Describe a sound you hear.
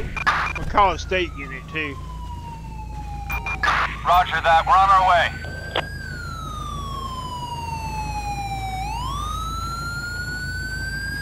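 A police siren wails and slowly rises and falls.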